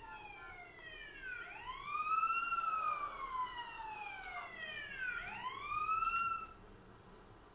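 A police siren wails loudly, rising and falling.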